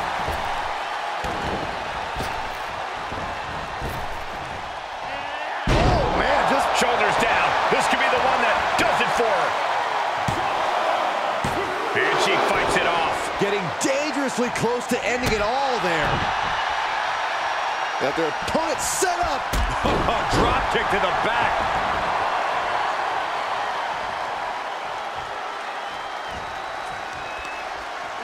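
A large crowd cheers and roars in a big echoing arena.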